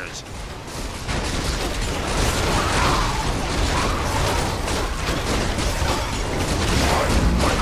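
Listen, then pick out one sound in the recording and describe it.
Weapons clash and magic blasts crackle in a noisy battle.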